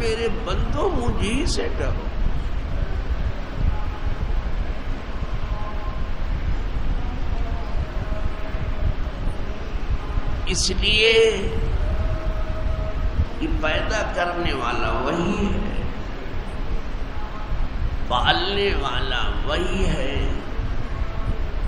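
An elderly man speaks slowly and earnestly through a microphone in an echoing hall.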